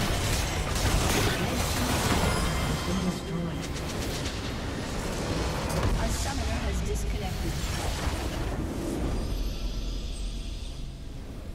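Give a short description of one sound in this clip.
Game spells and attacks crash and blast loudly.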